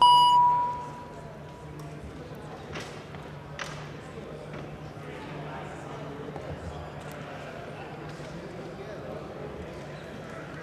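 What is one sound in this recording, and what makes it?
A crowd of people murmurs quietly in a large hall.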